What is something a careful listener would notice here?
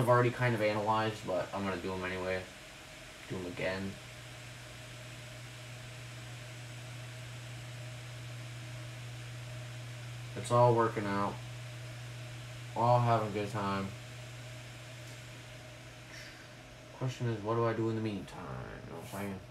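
A woman speaks calmly nearby, in short bursts.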